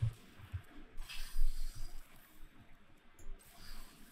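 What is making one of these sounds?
A soft digital whoosh plays as a card is played in a game.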